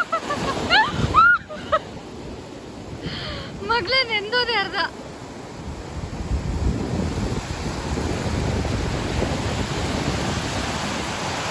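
Waves wash over the shore and foam hisses across the sand, outdoors.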